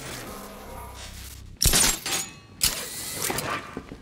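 A loud whoosh of a blast bursts out.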